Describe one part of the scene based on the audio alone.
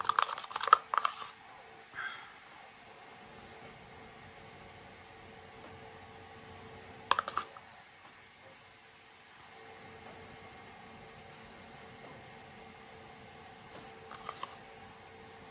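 Plastic cups clatter and knock against each other.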